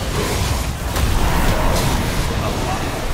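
A loud blast bursts and roars.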